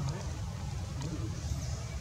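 A monkey screeches loudly close by.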